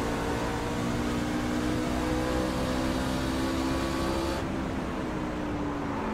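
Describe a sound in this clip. A race car engine roars steadily at high revs.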